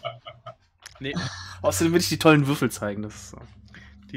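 A man laughs over an online call.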